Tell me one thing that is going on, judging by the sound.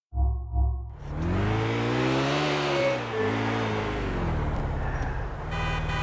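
A car engine revs up and down as the car drives along.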